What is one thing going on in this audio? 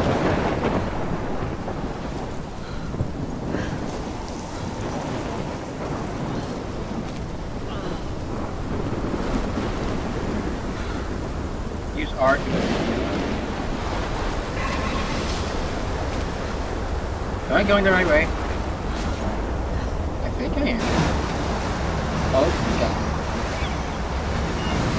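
Strong wind roars steadily outdoors in a storm.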